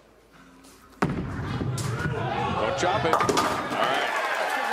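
A bowling ball thuds onto a lane and rolls loudly.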